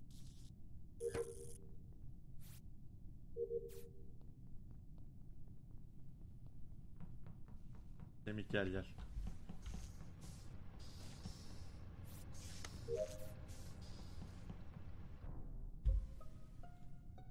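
Game sound effects beep and chime.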